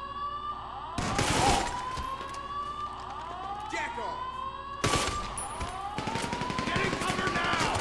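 A pistol fires rapid shots in a large echoing hall.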